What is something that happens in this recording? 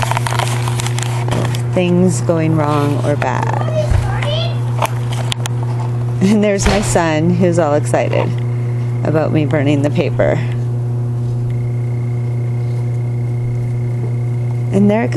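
Paper crackles softly as it burns.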